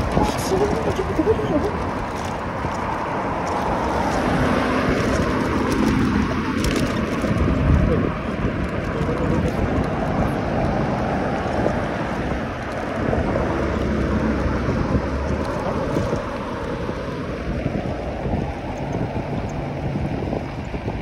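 Cars pass by on the road.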